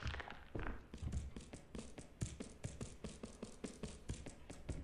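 Footsteps thud quickly on wooden stairs.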